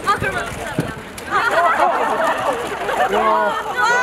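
Young women laugh together nearby.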